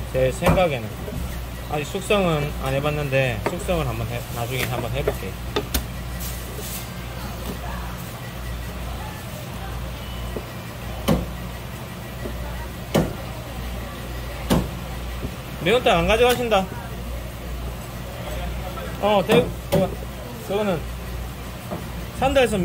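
A knife slices through soft fish on a wooden board.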